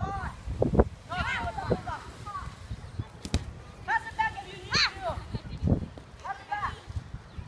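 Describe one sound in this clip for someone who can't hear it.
Young children shout and call out outdoors.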